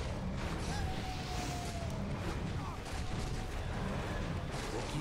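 Swords clash and spells burst in a busy video game battle.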